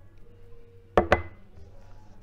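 A cup knocks down onto a wooden table.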